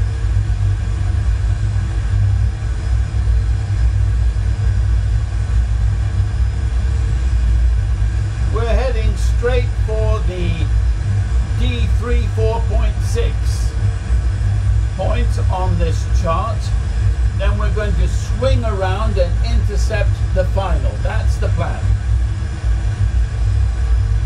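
A steady low jet engine rumble drones throughout.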